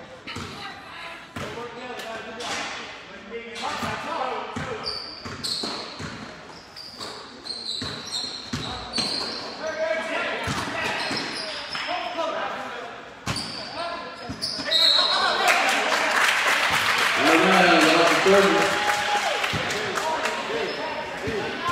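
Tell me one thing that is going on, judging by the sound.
A basketball bounces on the hardwood floor.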